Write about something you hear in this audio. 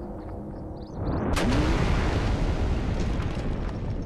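Rocks crash down with a loud, deep rumbling roar.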